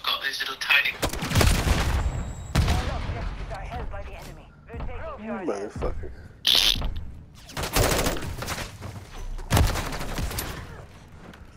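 Rifle shots crack loudly, some in quick bursts.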